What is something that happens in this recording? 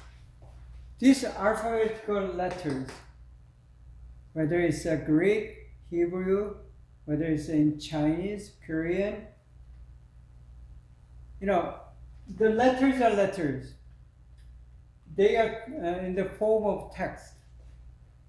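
A middle-aged man lectures calmly, pausing between phrases.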